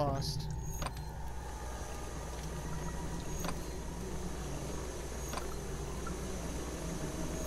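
Gas burners hiss softly beneath glass flasks.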